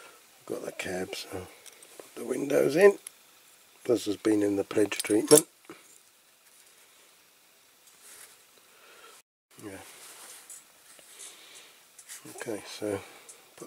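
Small plastic parts click softly together in someone's hands.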